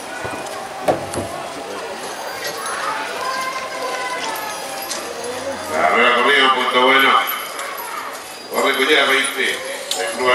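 Horses' hooves thud on soft dirt.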